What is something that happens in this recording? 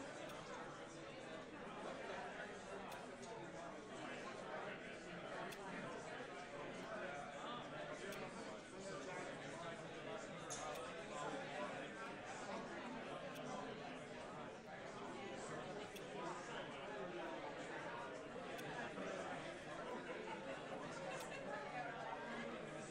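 A crowd of men and women chat in a murmur throughout a room that echoes.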